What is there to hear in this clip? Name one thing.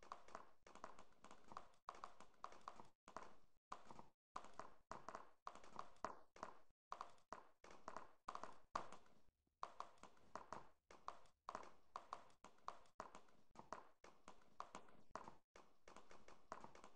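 A horse's hooves clop at a gallop.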